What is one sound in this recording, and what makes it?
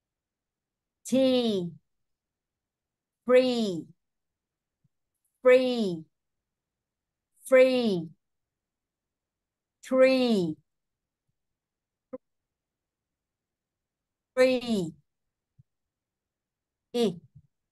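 A woman pronounces single words slowly and clearly over an online call, with pauses between them.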